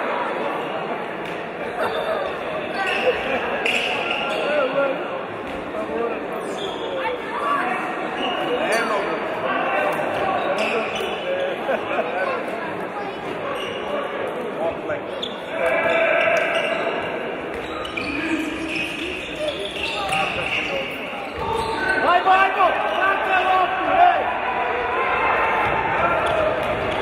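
Players call out to each other loudly on the court.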